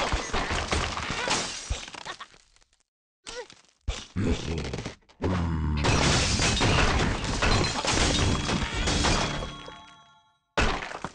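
Wooden and stone blocks crash and shatter as a structure collapses.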